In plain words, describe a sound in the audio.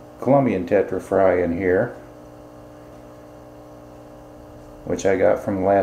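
Air bubbles gurgle steadily in a water tank.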